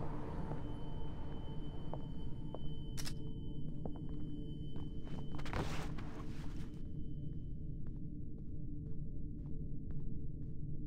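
Soft footsteps pad quietly across a floor.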